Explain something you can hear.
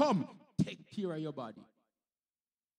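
A man speaks into a microphone in a calm, prayerful voice.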